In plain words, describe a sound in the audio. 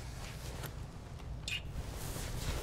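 A man and a woman kiss with a soft smack.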